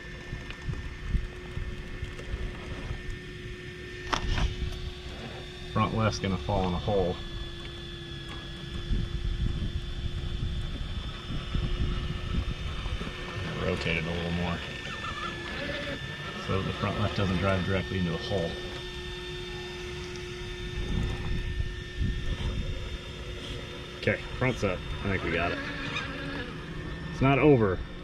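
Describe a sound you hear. Rubber tyres scrape and grind over rock.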